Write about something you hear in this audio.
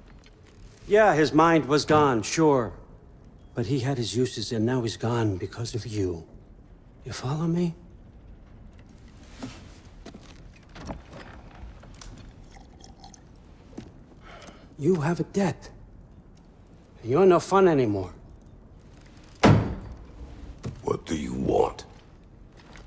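An elderly man speaks slowly in a deep, gravelly voice.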